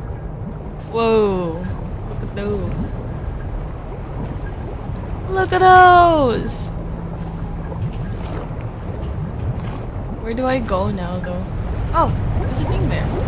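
A young woman talks with animation through a microphone, in short outbursts.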